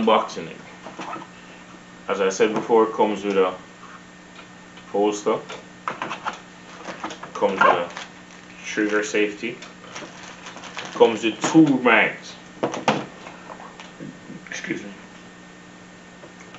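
Plastic cases click and rattle as they are handled.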